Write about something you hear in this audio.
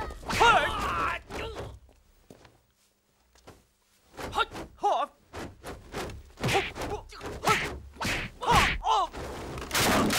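A young woman cries out sharply.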